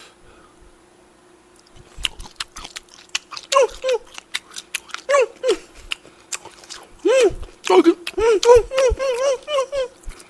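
A young man chews and smacks his lips loudly close to a microphone.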